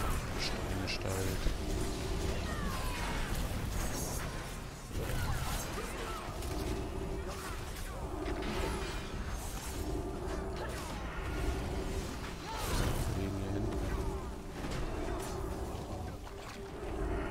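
Weapons clang and strike repeatedly in a fierce fight.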